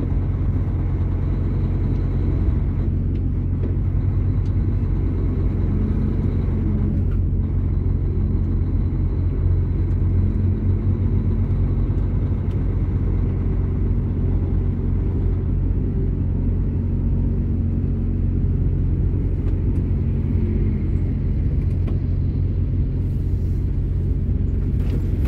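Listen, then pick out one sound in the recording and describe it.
Tyres hiss and splash over a wet road.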